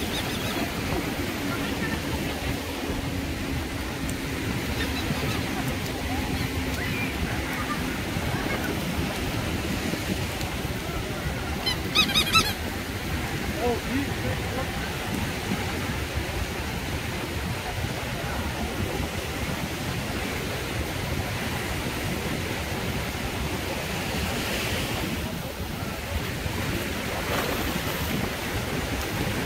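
Small waves wash gently onto the sand.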